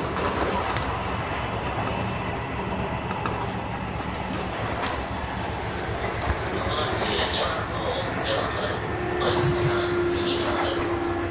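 A stopped train hums steadily.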